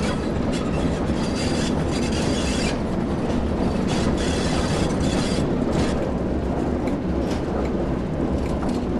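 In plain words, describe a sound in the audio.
Train wheels clatter over rail joints and points.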